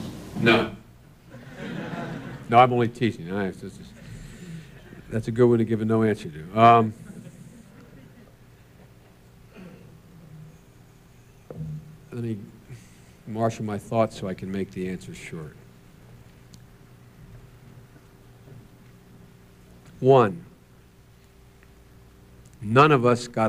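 A man speaks slowly into a microphone, heard over a loudspeaker in a large room, pausing often.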